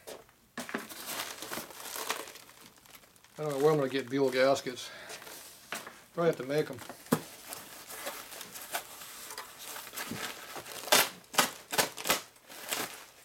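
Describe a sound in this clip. Plastic wrapping rustles and crinkles as a man handles it.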